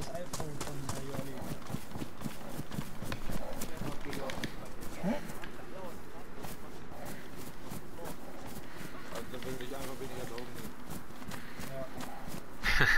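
Footsteps run quickly through tall grass.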